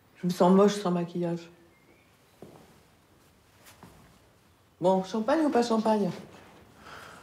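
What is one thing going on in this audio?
A man speaks quietly and calmly nearby.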